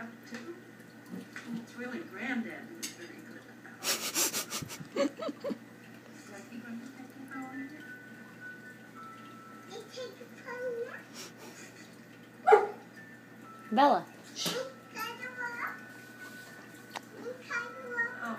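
An elderly woman talks softly to a toddler, heard through a television speaker.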